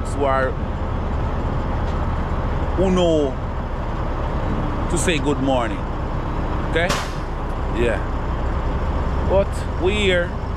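A man speaks close by in short bursts.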